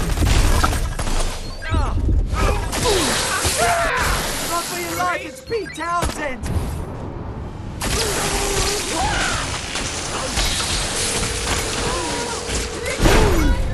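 An energy beam crackles and hums loudly.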